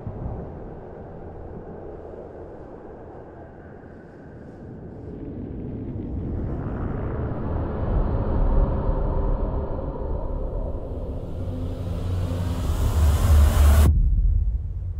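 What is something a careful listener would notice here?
Wind roars loudly during a long fall, then cuts off abruptly.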